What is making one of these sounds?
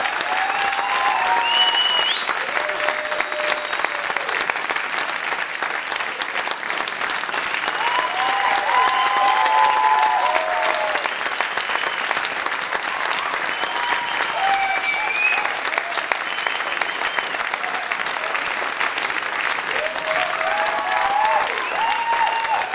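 A large audience applauds loudly and steadily.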